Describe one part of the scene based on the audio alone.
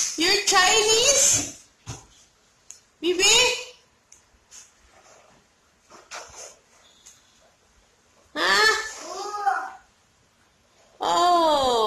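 A toddler squeals and babbles excitedly close by.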